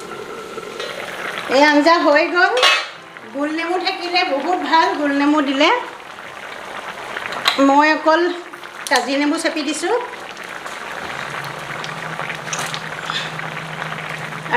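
Curry bubbles and simmers softly in a pan.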